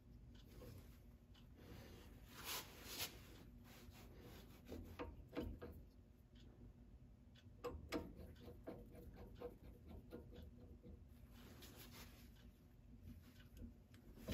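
A cutting tool scrapes against spinning wood in short bursts.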